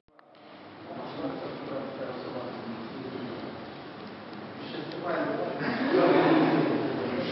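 A man speaks calmly to a quiet group in an echoing hall.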